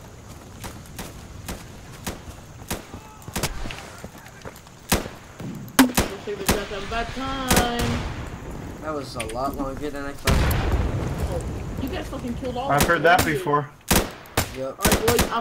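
Gunshots crack again and again, some close and some far off.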